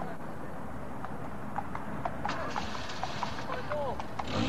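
A horse's hooves clop on the road.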